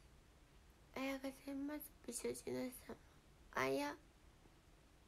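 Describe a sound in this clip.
A young woman speaks softly and briefly, close to a microphone.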